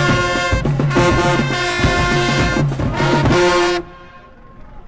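A brass marching band plays loudly outdoors with booming drums.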